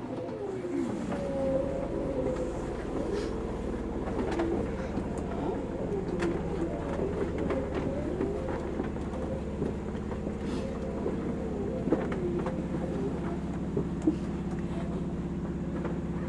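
A train rumbles steadily on the rails.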